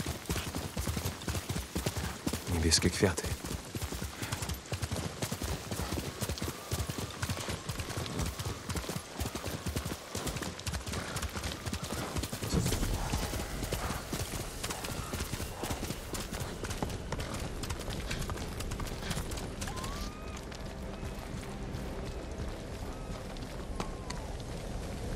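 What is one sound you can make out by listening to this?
A horse's hooves thud quickly on grass and dirt.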